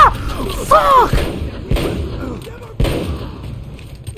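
Gunshots bang one after another.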